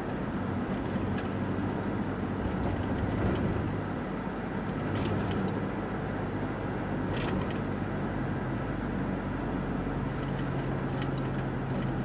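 Tyres roll along a paved road.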